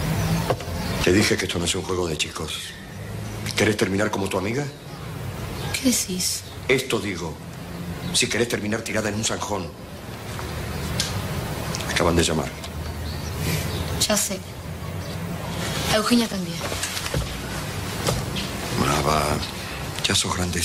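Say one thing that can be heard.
An older man speaks calmly and gravely.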